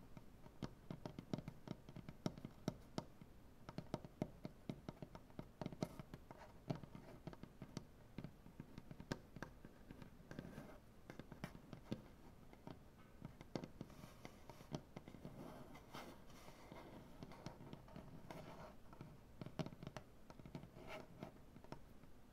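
Fingertips scratch and rub softly on wood.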